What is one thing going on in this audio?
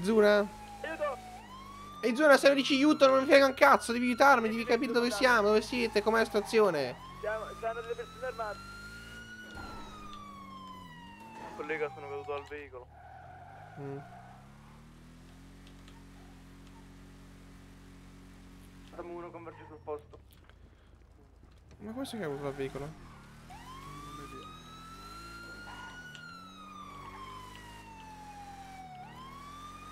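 A police siren wails, slowly rising and falling.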